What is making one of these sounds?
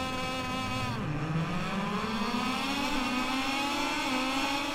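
A motorcycle engine revs up and rises in pitch as the bike pulls away.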